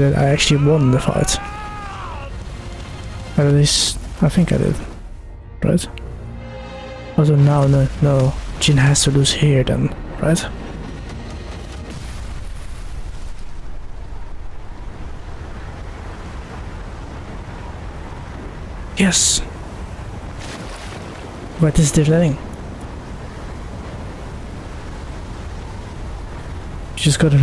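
A young man talks excitedly into a microphone, in short bursts.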